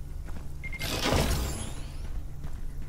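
A metal supply crate clanks open.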